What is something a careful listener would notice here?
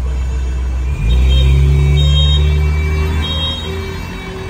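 Another car engine rumbles past close by.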